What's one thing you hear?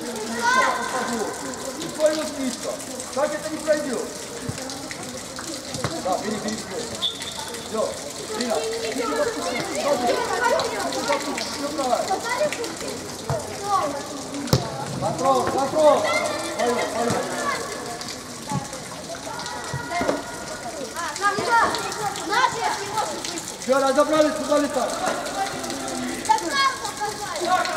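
Children shout and call out across a large echoing indoor hall.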